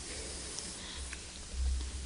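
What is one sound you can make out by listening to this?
Paper rustles on a lectern.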